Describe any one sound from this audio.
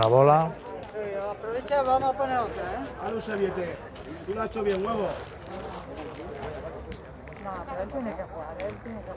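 Men talk with animation nearby.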